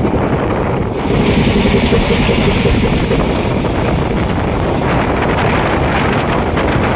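A passing freight train roars by on the next track.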